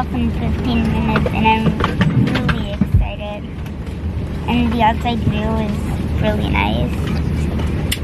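A young girl talks cheerfully close by.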